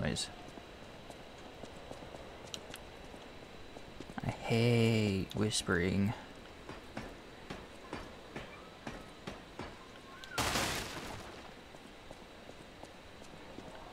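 Footsteps run quickly across stone.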